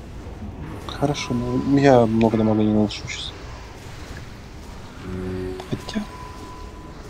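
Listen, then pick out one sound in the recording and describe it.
Magic spells crackle and chime in a game battle.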